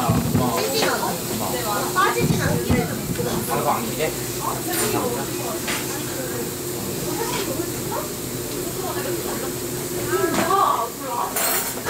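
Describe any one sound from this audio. Several young women chatter and laugh nearby.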